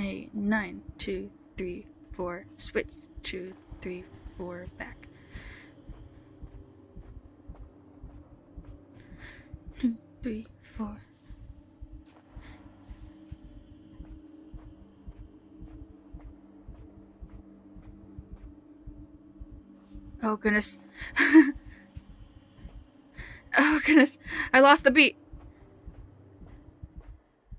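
Footsteps shuffle in step on a hard floor.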